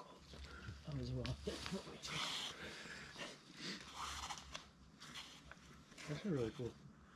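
Climbing shoes scuff and scrape against rock.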